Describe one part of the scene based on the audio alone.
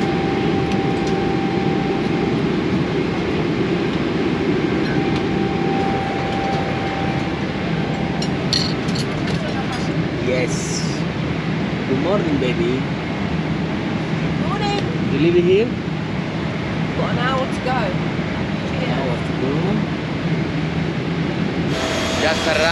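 A steady aircraft engine hum drones.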